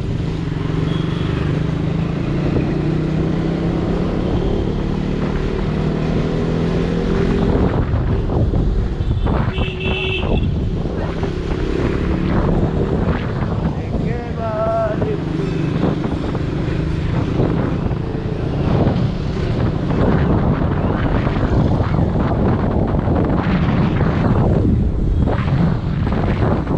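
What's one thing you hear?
Wind rumbles loudly across the microphone.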